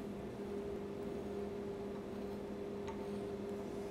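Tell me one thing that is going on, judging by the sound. A soapstone pencil scratches across a steel plate.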